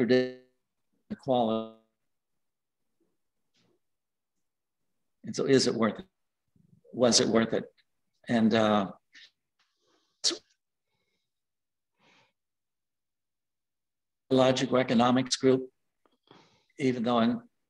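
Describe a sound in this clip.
An elderly man speaks calmly in short phrases with pauses, heard through a computer microphone.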